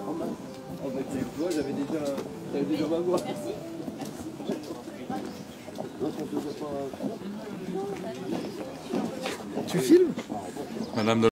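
Several men talk nearby as they walk, outdoors.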